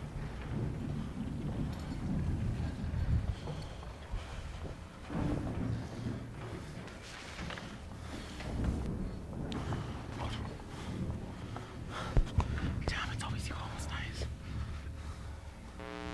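Footsteps thud and shuffle across a stage in a large hall.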